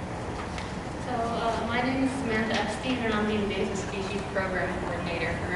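A young woman speaks calmly into a microphone.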